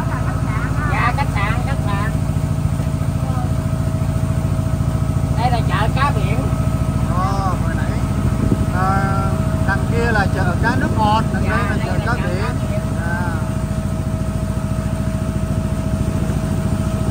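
A boat engine chugs steadily up close.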